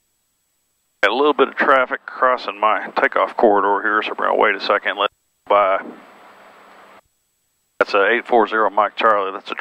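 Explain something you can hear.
A man talks calmly and close through a headset microphone.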